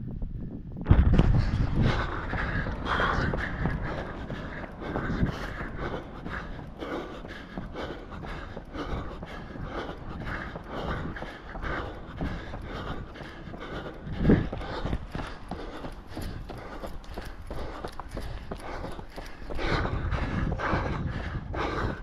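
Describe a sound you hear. A man talks breathlessly and close by.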